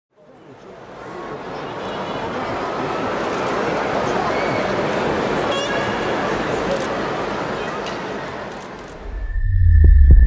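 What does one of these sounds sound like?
A large crowd cheers and murmurs in a big echoing hall.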